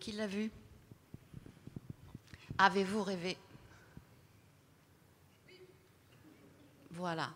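A woman speaks into a microphone in a large echoing room.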